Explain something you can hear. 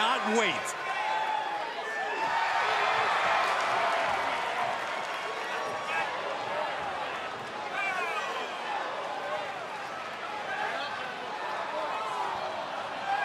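A large crowd cheers and whistles in an echoing arena.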